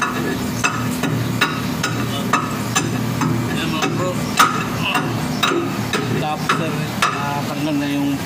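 Metal tools clank and knock sharply against metal.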